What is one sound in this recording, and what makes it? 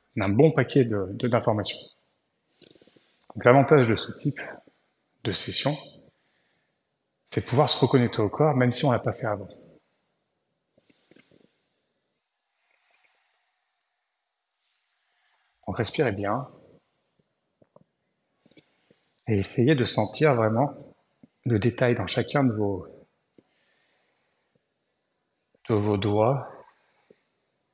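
A young man speaks calmly and slowly, close by, with pauses between phrases.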